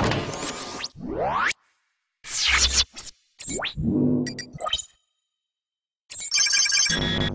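A menu chimes and whooshes open.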